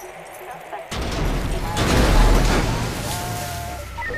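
A van crashes into water with a heavy splash.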